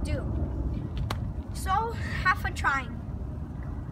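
A boy speaks with animation, close by.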